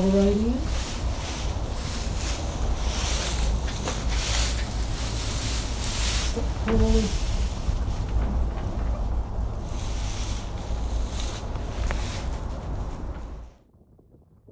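Wind blows hard and rumbles against the microphone outdoors.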